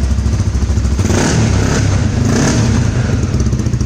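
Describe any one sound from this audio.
A motorcycle engine revs up sharply twice and drops back to idle.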